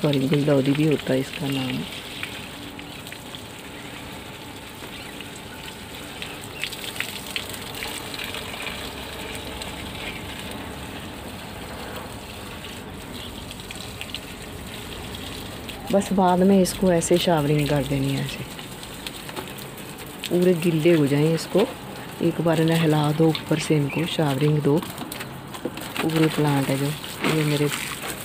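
Water sprays from a hose and patters onto leaves.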